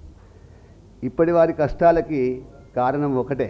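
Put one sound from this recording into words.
A middle-aged man speaks calmly into a microphone, with a slight echo.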